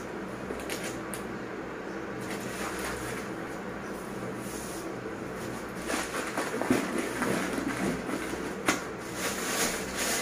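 Packets knock softly against a shelf.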